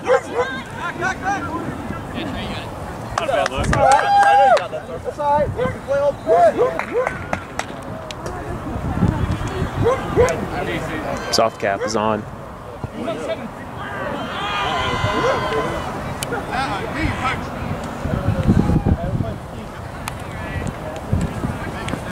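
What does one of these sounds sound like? Young men shout and call to each other across an open field.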